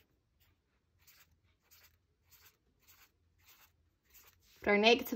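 A marker squeaks in short strokes on paper.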